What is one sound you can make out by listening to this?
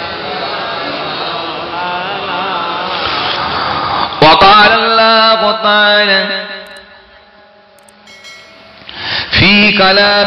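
A man preaches loudly into a microphone in a chanting, sing-song voice.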